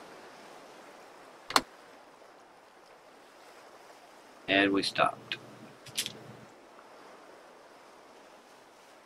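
Water laps gently against a wooden sailing boat.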